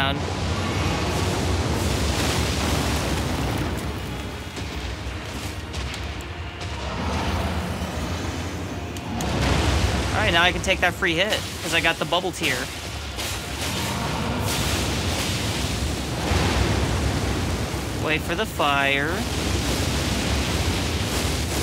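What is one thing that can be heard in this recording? A sword swings and strikes with metallic clangs.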